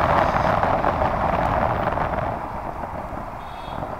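Wind rushes loudly past the rider, then eases.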